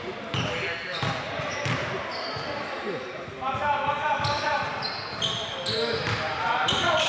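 Young men call out in an echoing gym.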